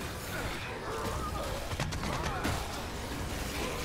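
Flesh splatters wetly.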